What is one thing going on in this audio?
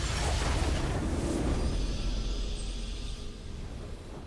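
A triumphant game chime rings out and slowly fades.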